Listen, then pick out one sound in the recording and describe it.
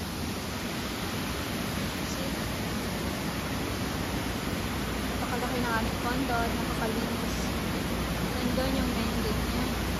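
Water trickles steadily in a fountain nearby.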